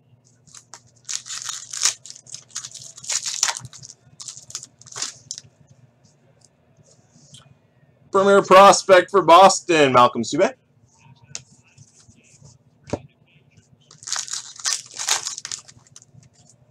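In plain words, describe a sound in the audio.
A foil wrapper crinkles and rustles.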